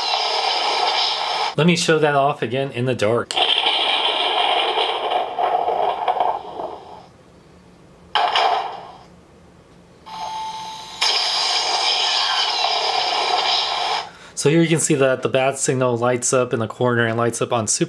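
A toy plays music and sound effects through a small, tinny loudspeaker.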